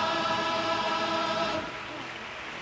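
A large male choir sings loudly in a hall.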